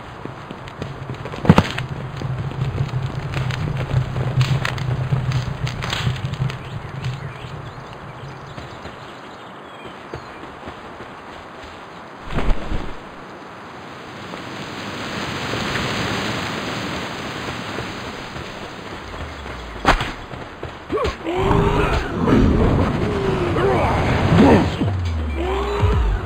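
Footsteps crunch on gravel as a game character runs.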